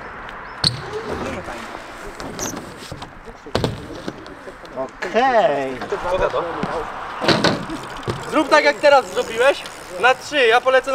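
A bike's tyres thud and roll on a ramp.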